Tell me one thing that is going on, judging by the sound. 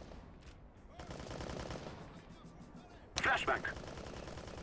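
A rifle fires short, loud bursts.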